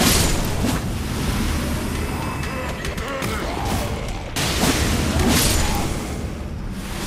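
Blood magic bursts with loud whooshing blasts.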